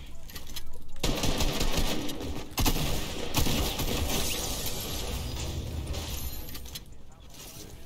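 Shotgun blasts boom in quick succession.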